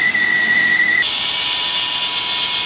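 A table saw hums and buzzes as it cuts wood.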